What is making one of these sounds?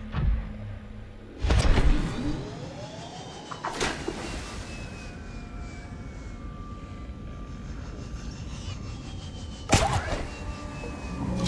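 A small submersible's engine hums steadily underwater.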